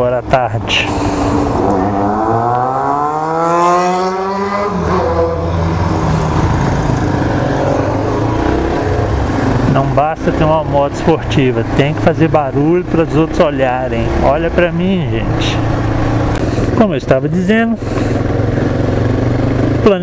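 A motorcycle engine rumbles and revs up as the bike rides along.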